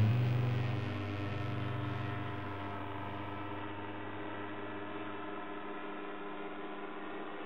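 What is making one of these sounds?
A paramotor engine drones steadily overhead and slowly fades.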